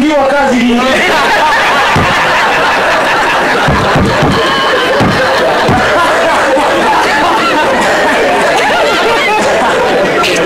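An elderly man laughs heartily close to a microphone.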